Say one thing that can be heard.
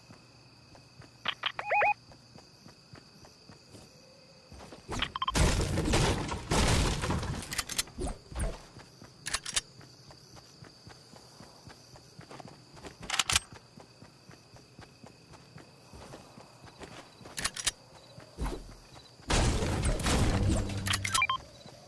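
Footsteps patter quickly on grass and pavement.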